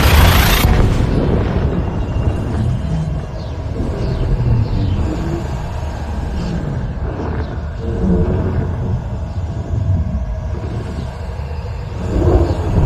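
A spacecraft engine rumbles deeply and steadily.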